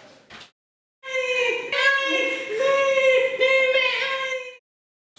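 A young man sings loudly nearby.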